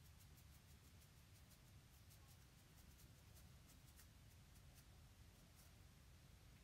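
A razor scrapes over stubble close by with quick, crackly strokes.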